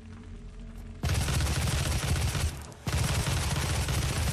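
Rapid gunfire blasts loudly and steadily.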